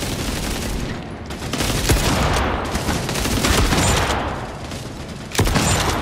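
A submachine gun fires rapid bursts of gunfire.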